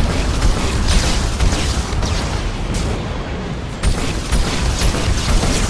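Explosions boom and crack in quick bursts.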